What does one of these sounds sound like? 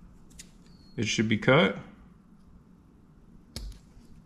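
Scissors snip through a soft strip.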